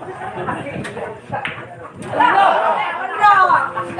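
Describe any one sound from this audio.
A cue strikes a ball and pool balls click together.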